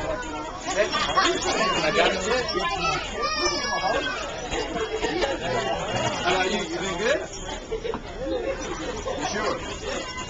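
A man speaks cheerfully to children.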